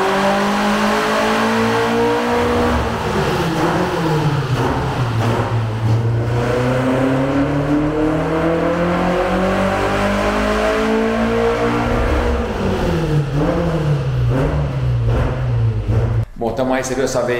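A car engine roars loudly, revving up and down.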